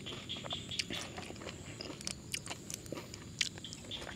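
Crisp green stems snap and crunch.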